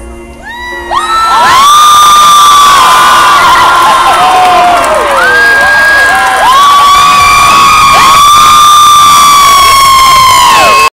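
A large crowd screams and cheers loudly all around.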